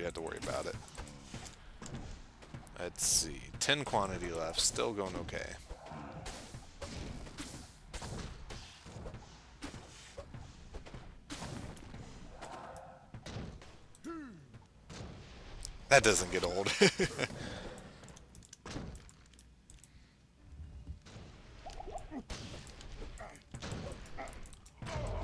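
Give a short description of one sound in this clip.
Weapons clash and strike monsters in quick blows.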